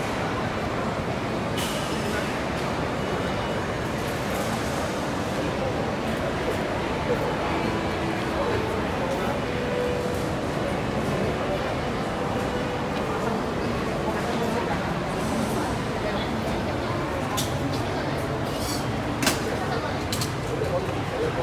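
A busy indoor space murmurs with a steady background hum.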